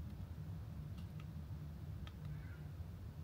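A button clicks on a handheld device.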